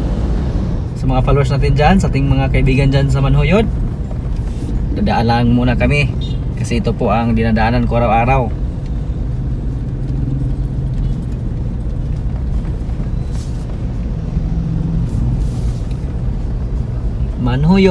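A car engine hums steadily with tyre noise on the road.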